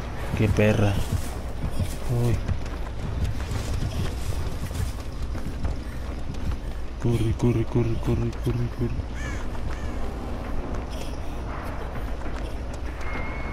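Footsteps run quickly through rustling grass.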